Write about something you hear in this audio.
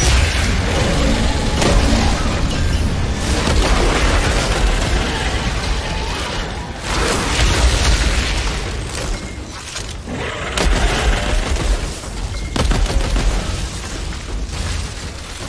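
Monsters roar and screech.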